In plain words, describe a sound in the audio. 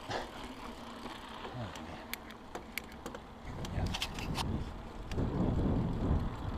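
Bicycle tyres roll over rough ground.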